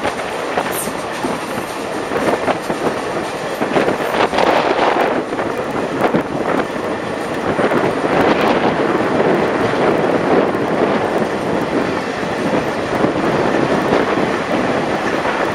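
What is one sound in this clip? A train rattles and clatters steadily along the tracks.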